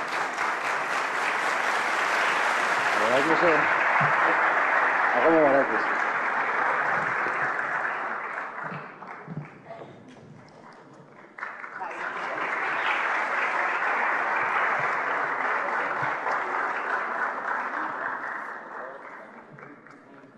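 An audience applauds in a large hall, then the applause fades and swells again.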